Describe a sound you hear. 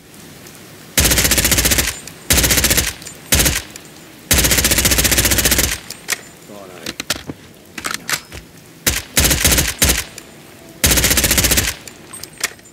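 A rifle fires loud rapid bursts close by.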